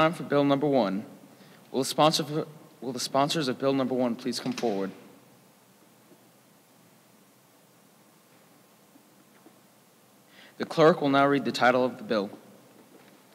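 A man speaks calmly into a microphone, heard over a loudspeaker in a large room.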